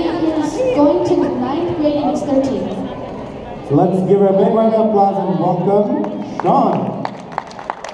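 A man speaks with animation through loudspeakers in a large echoing hall.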